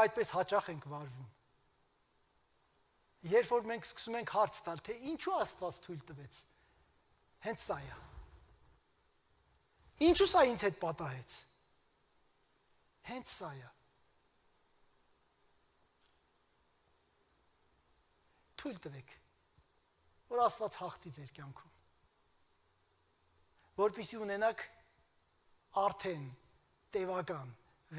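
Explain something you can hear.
A middle-aged man speaks with animation through a microphone in a large echoing hall, pausing often.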